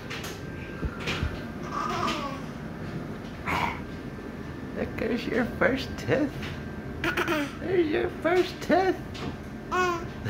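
A baby laughs and squeals close by.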